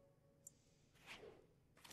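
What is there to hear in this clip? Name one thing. A creature attack sound effect swishes briefly.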